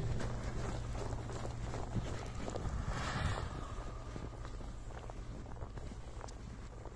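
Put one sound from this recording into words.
A car engine revs nearby.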